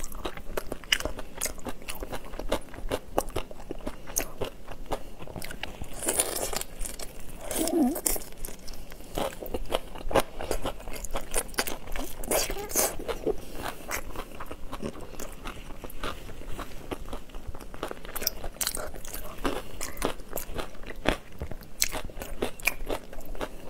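Shrimp shells crack and crunch close up.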